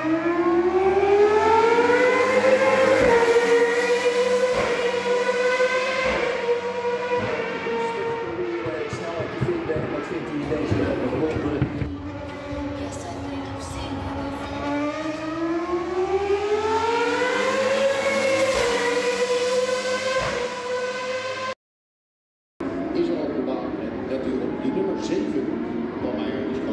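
A racing car's engine screams loudly, rising in pitch and stepping through gears.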